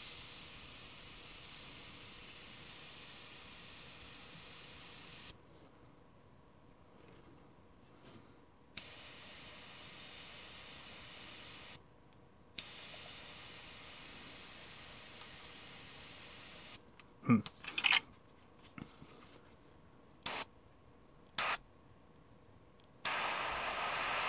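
An airbrush hisses in short, steady bursts of spray.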